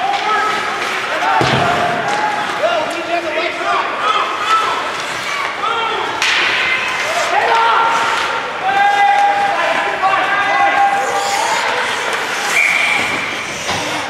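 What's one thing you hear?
Spectators shout and cheer in a large echoing arena.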